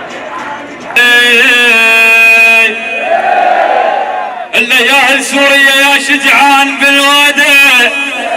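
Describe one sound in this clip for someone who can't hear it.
A young man sings loudly through a loudspeaker.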